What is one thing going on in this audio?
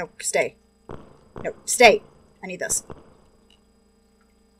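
A young woman talks close to a microphone with animation.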